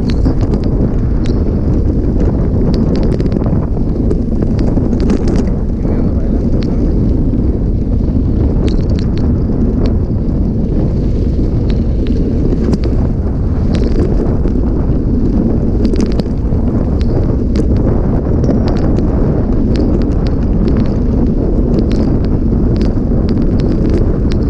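Tyres crunch and rattle over a rough dirt track.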